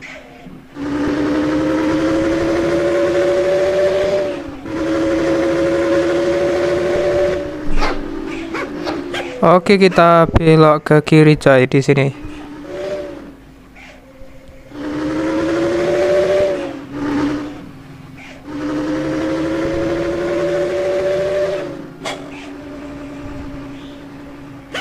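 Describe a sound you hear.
A bus engine hums and revs up again and again.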